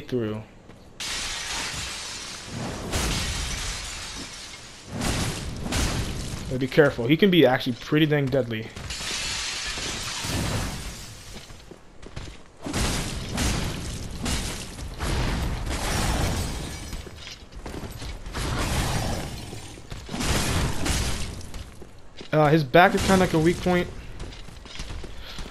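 Ice crystals burst and crackle with loud rushing blasts.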